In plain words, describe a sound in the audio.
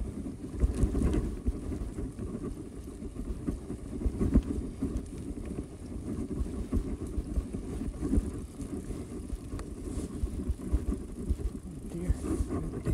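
Bicycle tyres roll and bump over grass.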